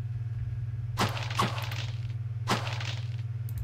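Sharp game sword strikes land in quick blows.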